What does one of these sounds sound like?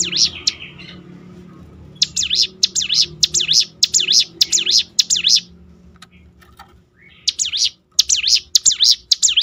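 A small bird sings loud, rapid, repeated chirping phrases close by.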